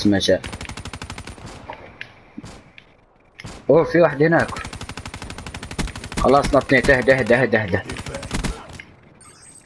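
Rapid automatic gunfire rattles in short bursts.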